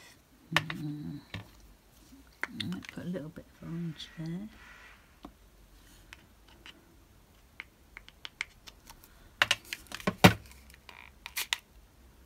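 Small plastic bottles knock lightly on a tabletop.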